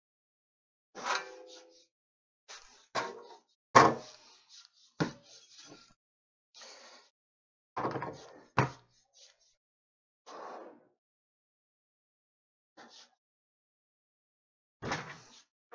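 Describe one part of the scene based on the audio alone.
Wooden boards knock and clatter as they are moved.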